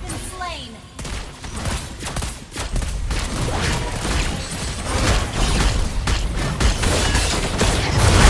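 Game spells burst and crackle in a fight.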